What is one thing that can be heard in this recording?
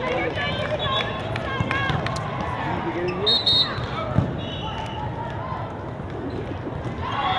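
Many young voices chatter and call out across a large echoing hall.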